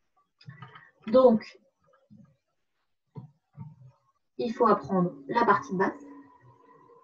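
A young woman speaks calmly into a nearby microphone.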